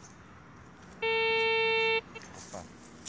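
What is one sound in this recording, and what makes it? A metal detector gives a steady electronic beep.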